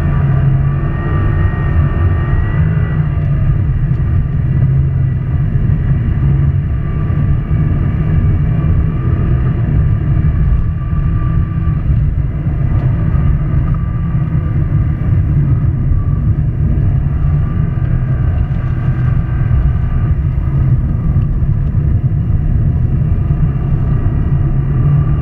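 A turbocharged flat-four rally car races at full throttle, heard from inside the car.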